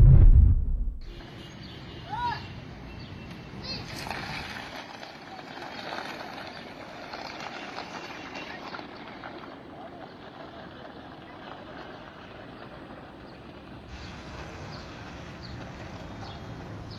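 Traffic hums along a busy street.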